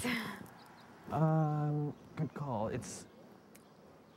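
A young man speaks, close by.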